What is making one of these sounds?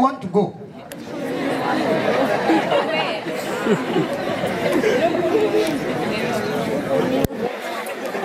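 A crowd of young people murmurs and calls out together.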